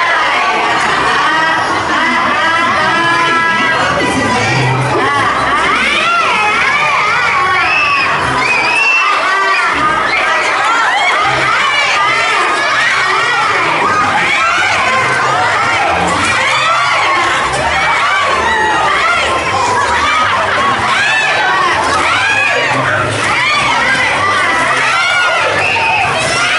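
A crowd of children and women shout and squeal excitedly close by, in a large echoing hall.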